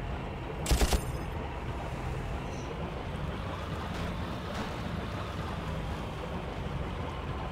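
A boat engine hums steadily.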